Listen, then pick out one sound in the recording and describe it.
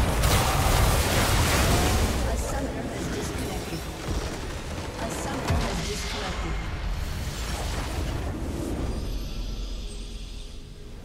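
Video game battle effects crash and crackle as a base structure is destroyed.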